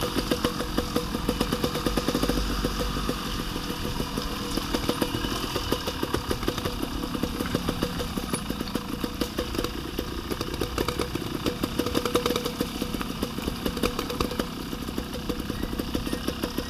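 Dirt bike engines chug and rev close by.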